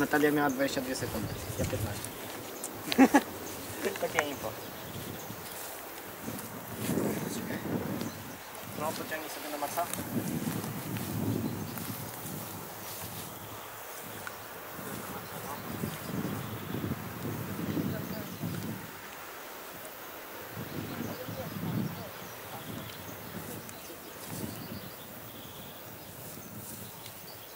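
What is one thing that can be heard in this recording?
Young people talk casually nearby, outdoors.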